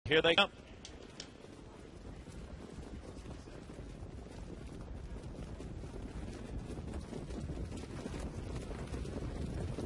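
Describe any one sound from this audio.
Trotting horses' hooves patter on a dirt track, growing louder.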